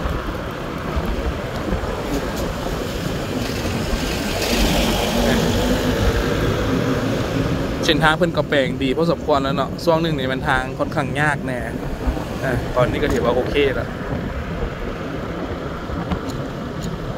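A motor engine hums steadily.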